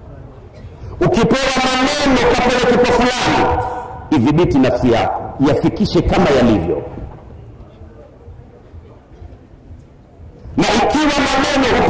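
A man preaches with animation into a microphone, his voice loud and close, in bursts with pauses.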